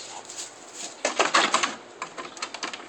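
A dog's claws scrape and scrabble against a wooden fence.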